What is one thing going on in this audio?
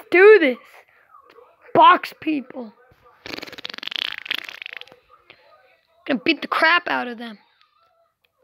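A child speaks with animation close to a microphone.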